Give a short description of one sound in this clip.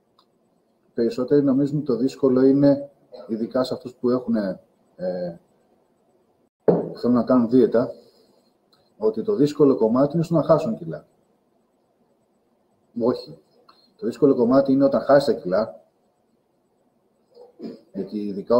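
A man talks calmly and close up, in short bursts with pauses.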